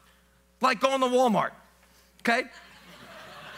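A man speaks loudly and with emphasis through a microphone in a large hall.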